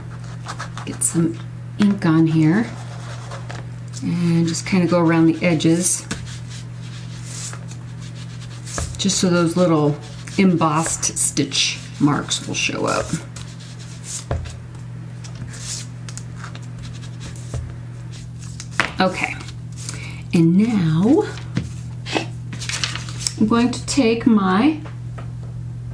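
A woman talks calmly into a microphone.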